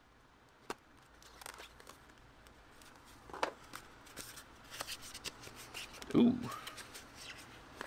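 A cardboard box lid slides open with a soft scrape.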